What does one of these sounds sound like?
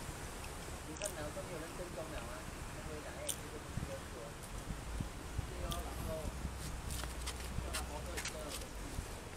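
A man speaks casually close by.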